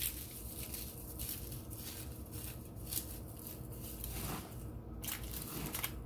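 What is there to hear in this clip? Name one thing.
Hands squish and knead raw ground meat with crumbled crackers.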